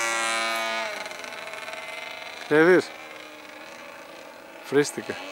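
A small propeller plane drones overhead, its engine dropping in pitch as it passes and fades.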